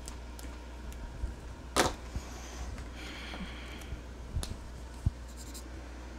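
Plastic markers clack together as a hand picks one up.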